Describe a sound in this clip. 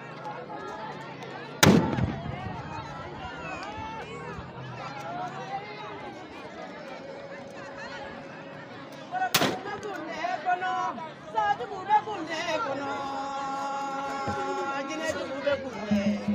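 A large crowd of women and men chatters and calls out outdoors.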